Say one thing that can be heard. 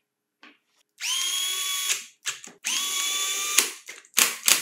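A cordless drill whirs in steady bursts.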